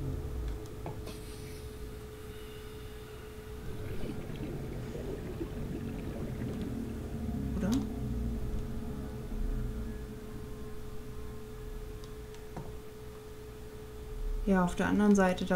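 A small underwater vehicle hums steadily.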